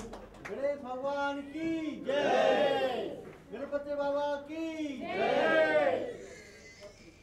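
A crowd chants a prayer in unison.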